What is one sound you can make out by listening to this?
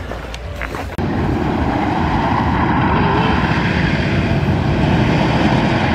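A roller coaster rumbles and roars across the water.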